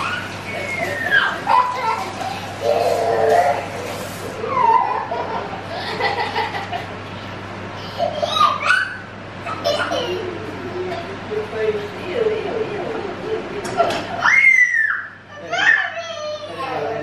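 A young child squeals and laughs nearby.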